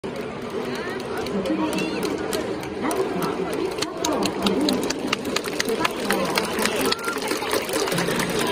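Many spectators clap and bang noisemakers in quick rhythm.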